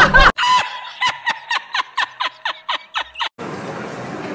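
A man laughs heartily in bursts close to a microphone.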